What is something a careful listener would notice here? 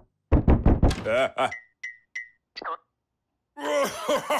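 A man laughs and speaks with animation in a cartoonish voice.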